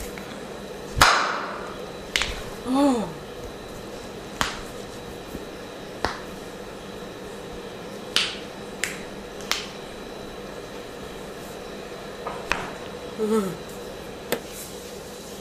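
Joints crack and pop sharply.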